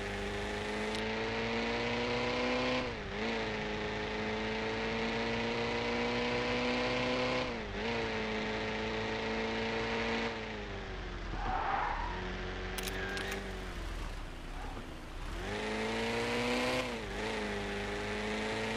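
A car engine revs up through the gears, dropping in pitch at each gear change.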